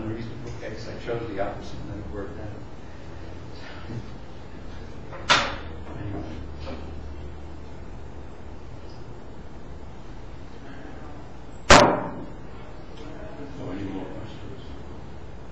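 An elderly man speaks calmly, at a little distance.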